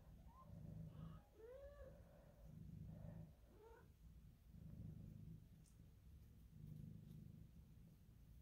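A cat purrs loudly and steadily, close by.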